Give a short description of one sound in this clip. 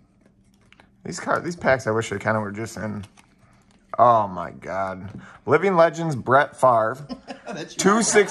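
Trading cards slide and flick against each other as they are shuffled.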